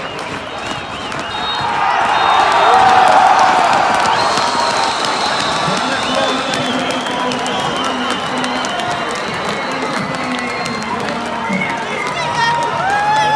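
A large crowd cheers and roars outdoors, swelling to a loud peak.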